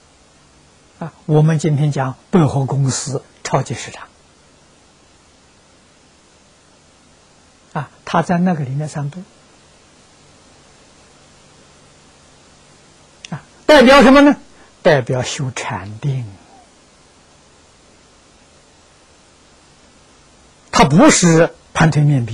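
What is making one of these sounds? An elderly man speaks calmly and with animation into a close microphone, in bursts with long pauses.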